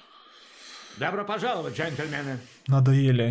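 A middle-aged man speaks calmly close to a microphone.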